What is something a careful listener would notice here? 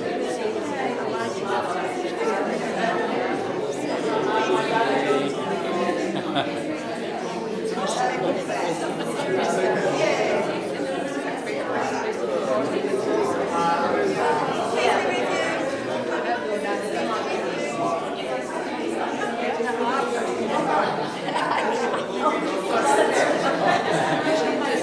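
Many men and women chat warmly and greet one another in an echoing room.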